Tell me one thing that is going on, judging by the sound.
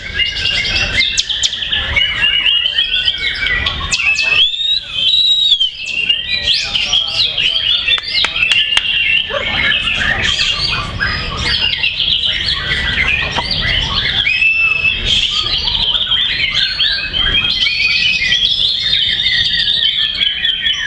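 A caged songbird sings loud, rapid, varied whistling trills close by.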